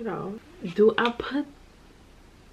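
A young woman speaks calmly and close by into a microphone.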